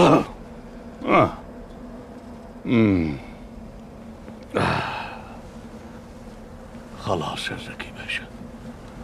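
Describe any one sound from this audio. An elderly man speaks in short, emotional bursts nearby.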